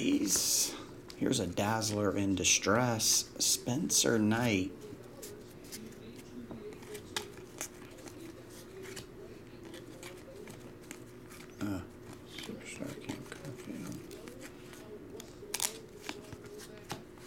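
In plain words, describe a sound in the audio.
Trading cards rustle and flick as they are shuffled through by hand.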